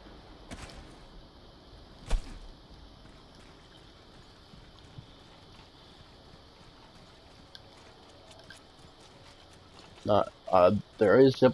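Footsteps run over grass and dirt.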